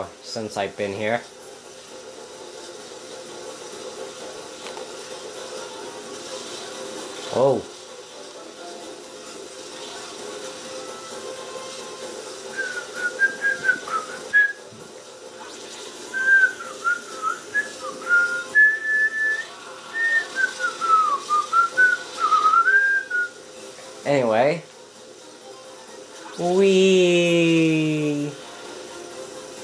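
A small kart engine hums steadily throughout.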